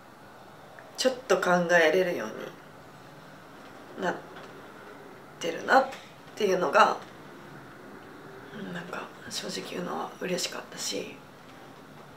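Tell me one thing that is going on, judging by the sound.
A young woman speaks softly and haltingly, close to a microphone.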